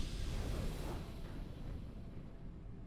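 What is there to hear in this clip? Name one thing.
A triumphant game fanfare rings out and fades.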